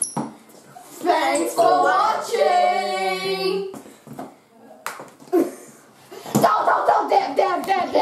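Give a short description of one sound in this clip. Several teenage boys laugh and shout with excitement close by.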